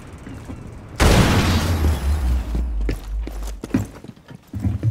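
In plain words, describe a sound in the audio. An explosion bursts loudly and rumbles.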